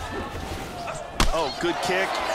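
A heavy kick lands with a sharp thud.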